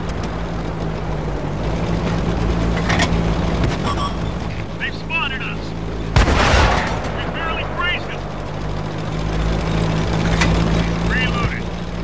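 A tank engine rumbles steadily as the tank drives along.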